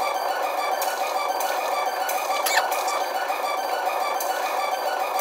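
Upbeat game music plays through television speakers.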